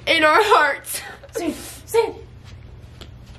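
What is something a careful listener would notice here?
A young woman speaks loudly and with animation into a microphone.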